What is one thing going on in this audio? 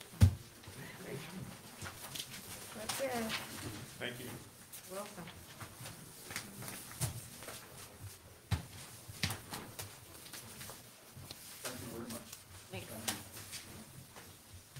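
A man speaks at a distance in a large room with some echo.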